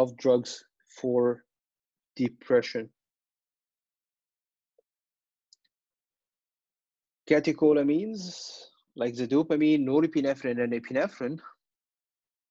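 A man lectures calmly through a microphone, in bursts with long pauses.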